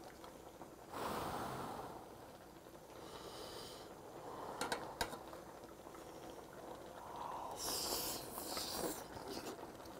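A man blows on hot food with loud puffs of breath.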